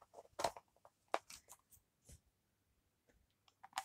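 Hard plastic clatters as a container is handled.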